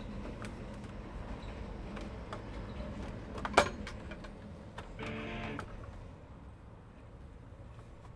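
Plastic parts clatter and knock as they are handled.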